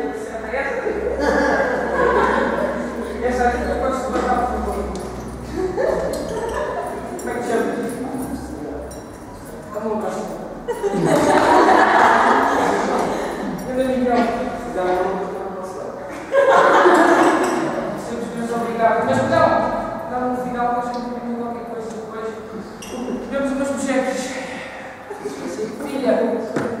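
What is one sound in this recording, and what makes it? A young man speaks loudly and with animation to an audience nearby.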